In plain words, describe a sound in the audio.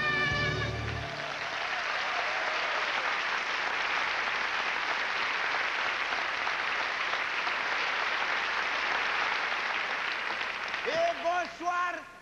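A large audience claps and cheers in a big hall.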